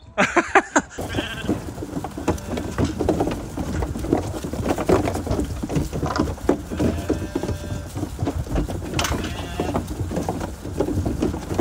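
Sheep hooves trample through wet grass and leaves.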